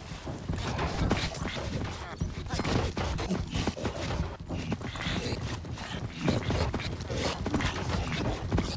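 Zombies groan.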